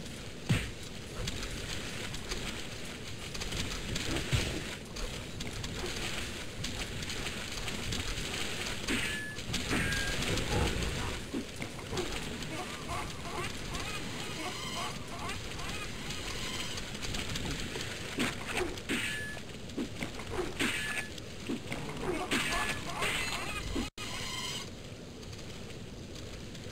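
Splashing footsteps wade through water.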